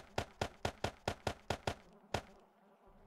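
Quick soft clicks tick in a rapid series.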